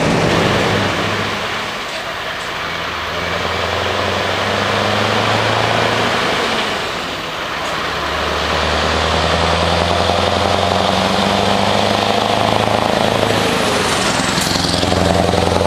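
A heavy lorry's engine rumbles as it approaches and roars past close by.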